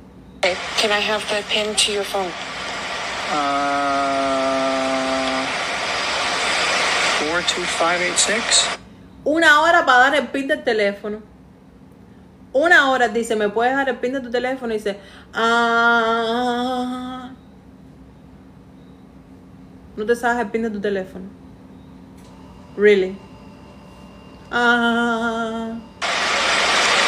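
A woman talks with feeling close to a microphone.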